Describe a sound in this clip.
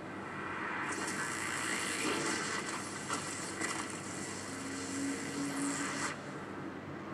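Magic energy crackles and hums loudly.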